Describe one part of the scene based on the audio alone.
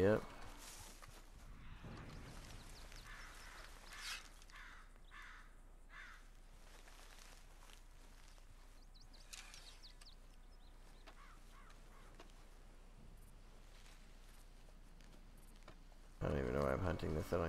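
Grass rustles as someone creeps through it.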